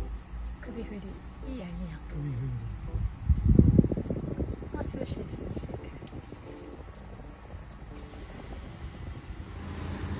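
A small electric fan whirs quietly and steadily.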